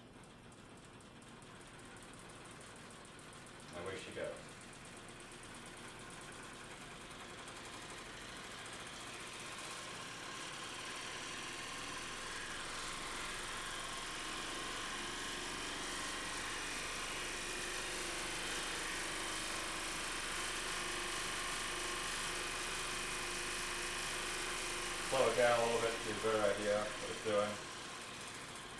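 A small motor whirs steadily and slowly grows louder.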